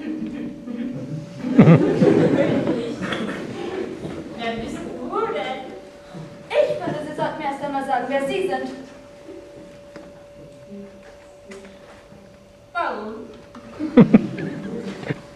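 A young woman speaks expressively into a microphone, heard over loudspeakers in a hall.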